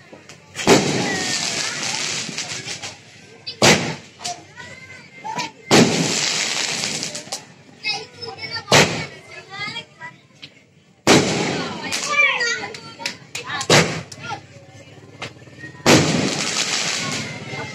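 Fireworks crackle and sizzle as they burst in the air.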